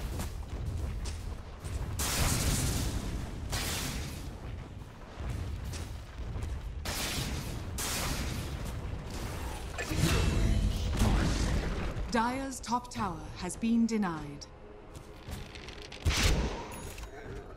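Weapons clash and thud in a fantasy battle.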